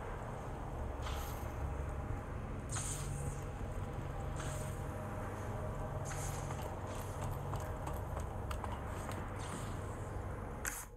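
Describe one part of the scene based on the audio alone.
Footsteps scuff slowly on a hard floor.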